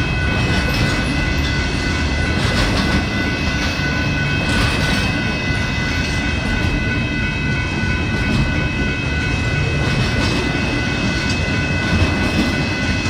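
A freight train rumbles and clatters steadily past close by.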